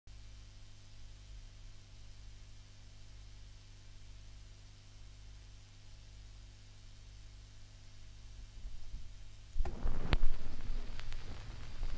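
A low steady hum comes from a spinning turntable.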